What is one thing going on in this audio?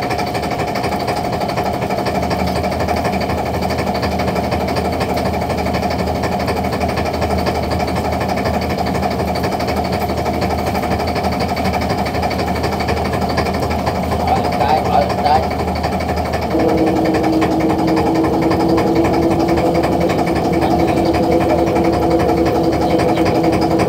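A winch motor whirs steadily and shifts to a higher pitch.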